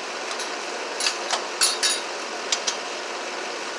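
Metal clicks and clinks in a man's hands.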